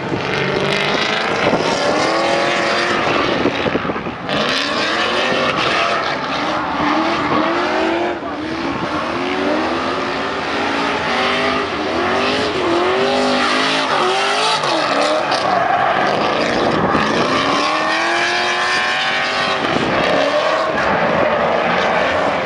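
A race car engine revs loudly, rising and falling in pitch.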